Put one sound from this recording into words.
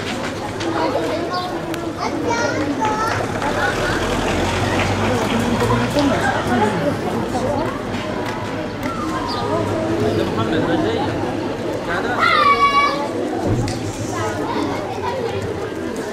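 A crowd of men chatter and call out nearby, outdoors.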